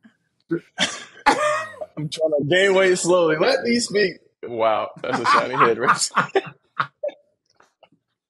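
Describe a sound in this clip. A man laughs loudly over an online call.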